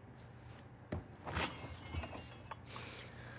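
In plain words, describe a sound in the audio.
A young woman bites into a crisp apple with a crunch.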